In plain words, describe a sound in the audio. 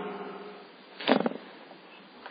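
A television clicks off.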